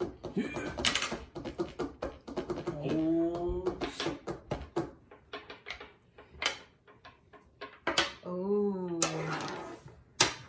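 Domino tiles click and clatter on a wooden table.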